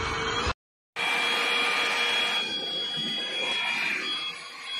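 A vacuum cleaner head rolls over a tiled floor.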